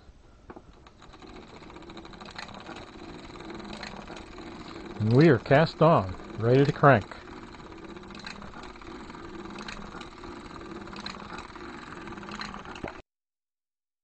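A hand-cranked knitting machine clatters and ticks steadily.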